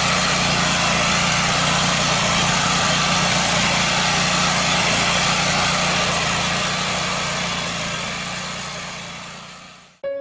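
A small petrol engine drones steadily up close, then fades away.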